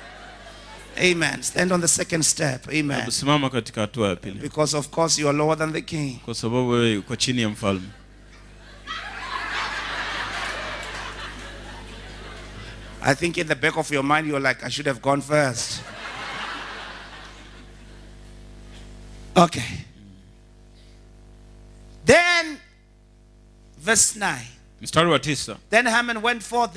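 A man speaks with animation through a microphone, echoing in a large hall.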